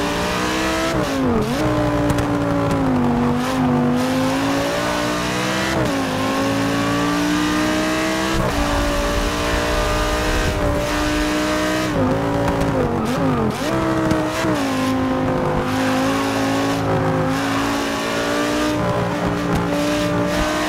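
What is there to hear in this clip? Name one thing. A racing car engine roars, rising and falling in pitch as the gears shift.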